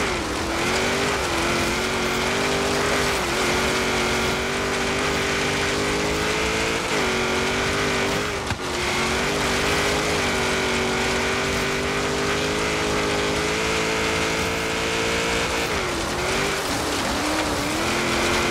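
Tyres screech as a car drifts through corners.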